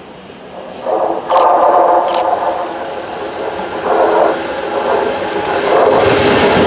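A diesel locomotive sounds its horn loudly as it approaches.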